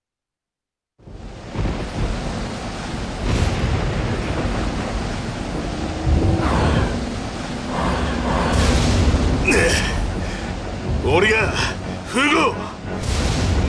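A deep engine rumble roars steadily.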